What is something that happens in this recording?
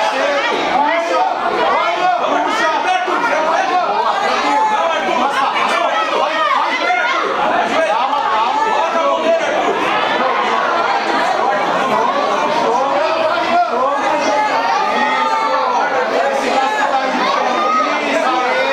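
A crowd of spectators shouts encouragement loudly and continuously.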